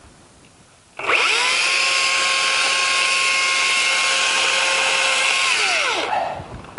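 A chainsaw runs loudly at a steady high whine, then winds down.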